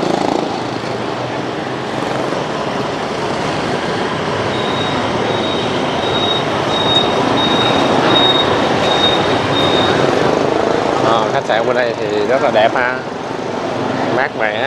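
Motorbike engines buzz past nearby.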